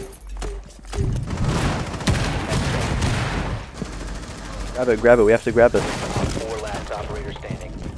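A window smashes open as someone crashes through it.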